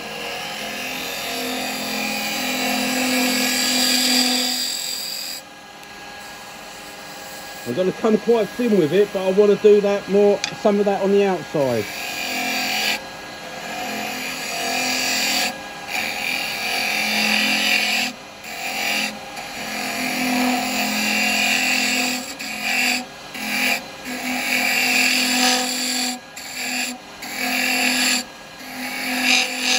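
A chisel scrapes and hisses against spinning wood.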